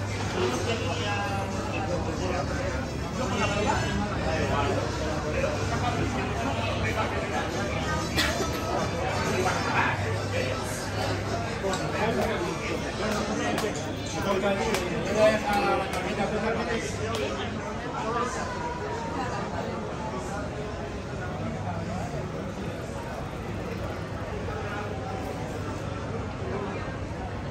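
Many people chatter around outdoors.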